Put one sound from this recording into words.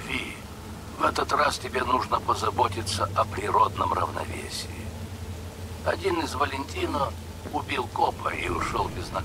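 A middle-aged man speaks calmly over a phone call.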